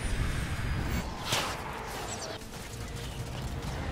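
A sword strikes with a sharp clang.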